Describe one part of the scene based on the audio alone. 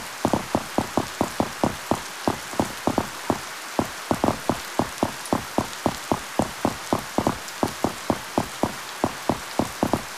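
Rain falls with a steady hiss.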